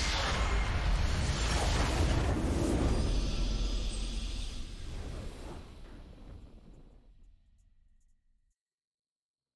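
A triumphant game victory fanfare swells with a deep rumble and slowly fades out.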